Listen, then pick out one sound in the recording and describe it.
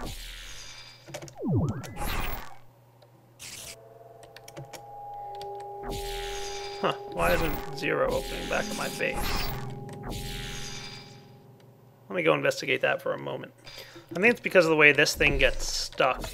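A portal gun fires with a short whoosh.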